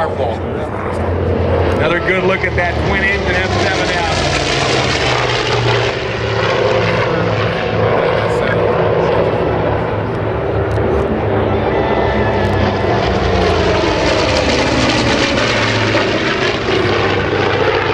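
Propeller plane engines roar loudly overhead, swelling and fading as aircraft pass.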